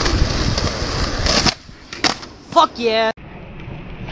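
A skateboard deck clacks against the ground.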